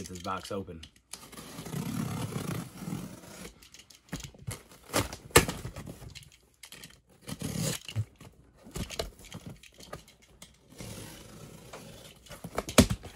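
A box cutter slices through packing tape on a cardboard box.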